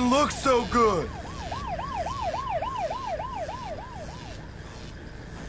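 A police siren wails in quick rising and falling whoops.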